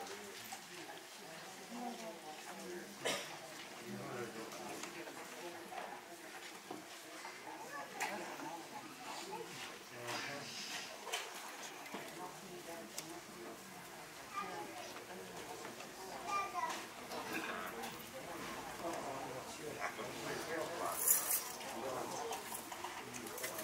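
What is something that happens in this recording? Men talk quietly at a distance in a room with some echo.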